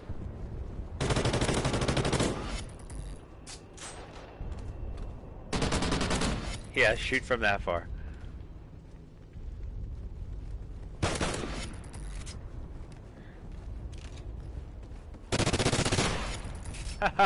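Rifles fire in loud bursts of gunshots.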